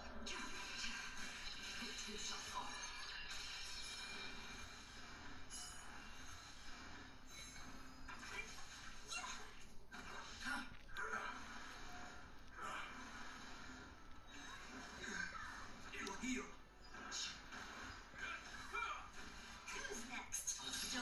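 Magic attacks crash and whoosh in bursts.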